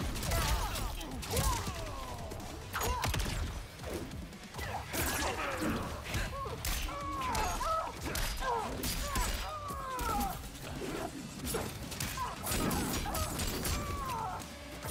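Heavy blows and impacts thud and crack in quick succession.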